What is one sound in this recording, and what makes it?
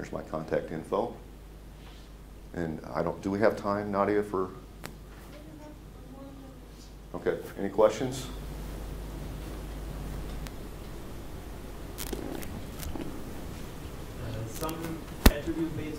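A man speaks calmly in a room, heard through a microphone.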